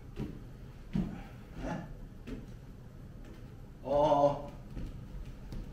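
Bare footsteps thud on a wooden floor.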